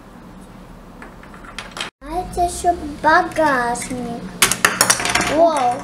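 Plastic toy parts click and snap together.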